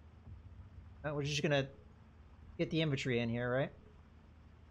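A man speaks in short phrases close to a microphone.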